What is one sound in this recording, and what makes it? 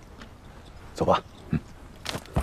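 A young man speaks briefly.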